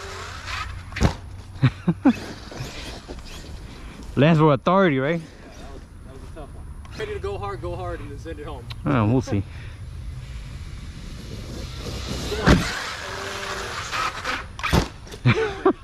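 A toy car lands hard on grass with dull thuds.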